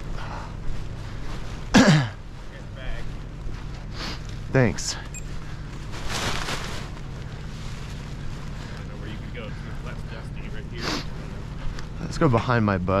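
Wind rumbles steadily across an open outdoor space.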